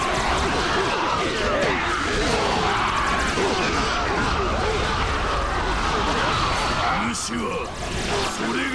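Blades slash and strike again and again in a chaotic battle.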